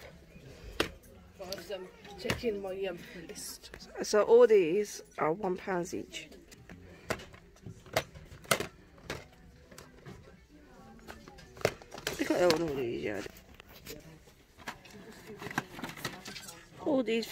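Plastic disc cases clack as a hand flips through them.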